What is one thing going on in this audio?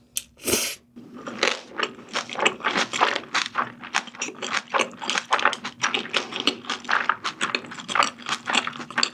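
A young woman chews food wetly with her mouth full, close up.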